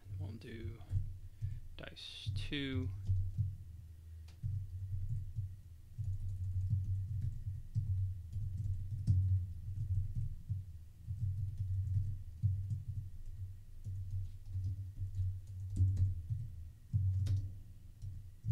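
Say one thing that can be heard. Keys clack on a computer keyboard.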